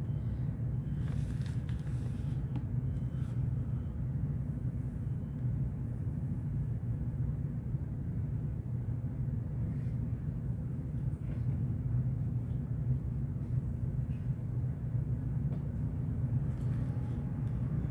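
Paper pages rustle softly as a book's page is turned.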